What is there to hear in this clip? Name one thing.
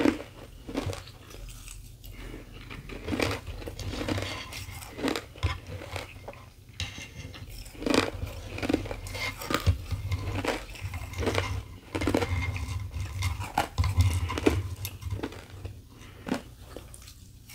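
A woman crunches ice close to a microphone.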